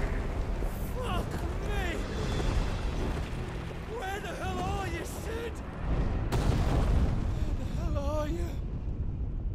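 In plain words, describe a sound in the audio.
A wounded man shouts hoarsely and desperately, close by.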